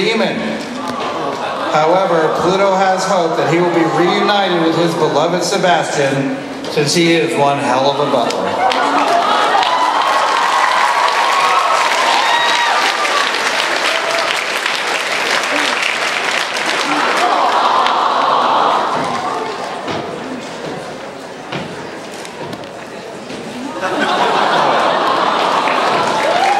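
An audience cheers and applauds loudly in a large hall.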